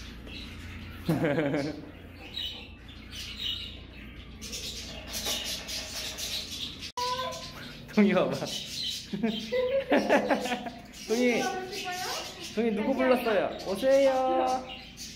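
A small child talks and squeals excitedly close by.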